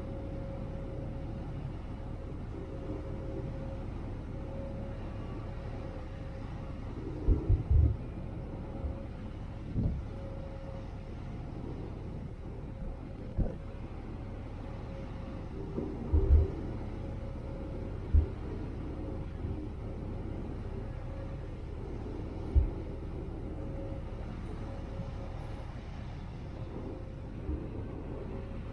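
Churning wake water rushes behind a boat.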